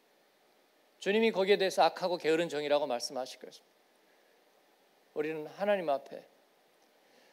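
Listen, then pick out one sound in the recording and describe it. A middle-aged man speaks calmly into a microphone, heard through loudspeakers, with pauses.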